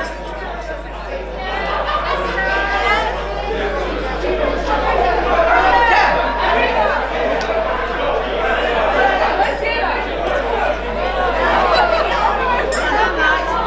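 Women sing together loudly in a lively group.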